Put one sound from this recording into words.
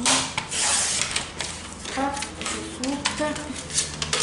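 A sheet of card rustles as it is lifted.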